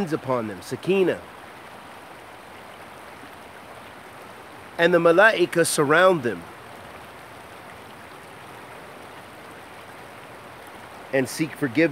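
A man speaks calmly close by, in short bursts.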